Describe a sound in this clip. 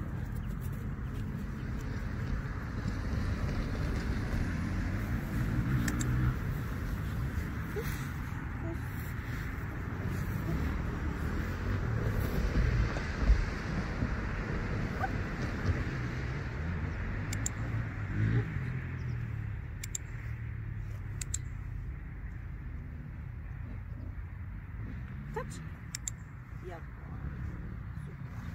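A woman speaks calmly to a dog, close by.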